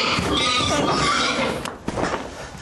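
A woman cries out in distress.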